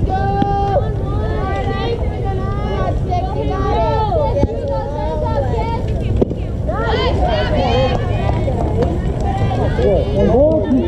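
Young girls shout and cheer from a distance, outdoors.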